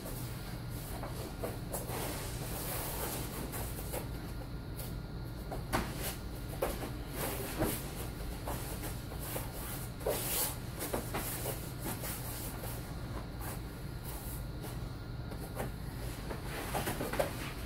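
Bodies thud and shuffle on a padded floor mat.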